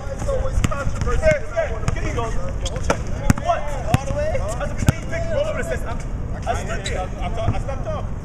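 Several men talk and call out loudly outdoors.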